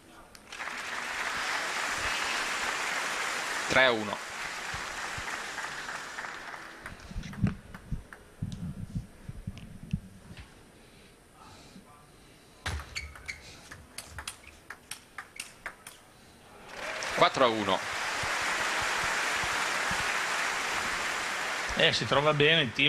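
A large crowd applauds in an echoing hall.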